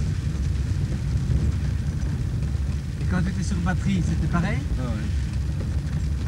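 A vehicle's engine rumbles steadily as it drives along a bumpy dirt road.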